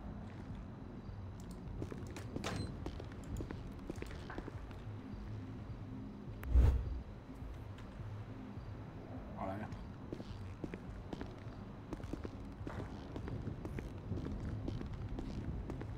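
Footsteps tap on a hard floor indoors.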